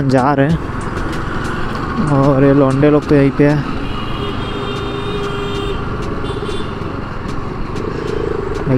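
Traffic noise rushes past outdoors.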